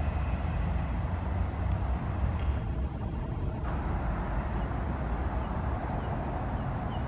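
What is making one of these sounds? A diesel train rumbles steadily as it approaches along the track.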